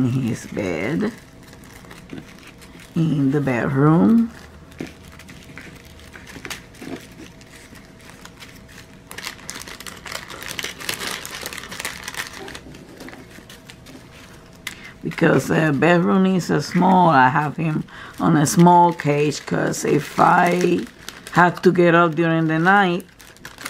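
Small plastic bags rustle and crinkle as hands handle them.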